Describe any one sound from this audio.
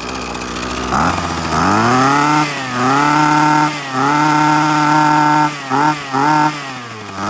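A small petrol engine revs up and down repeatedly.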